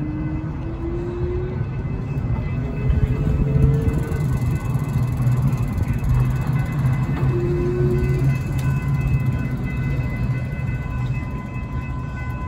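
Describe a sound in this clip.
Stroller wheels rumble steadily over pavement.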